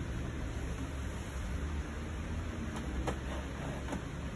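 Paper rustles as a sheet is slid into a printer.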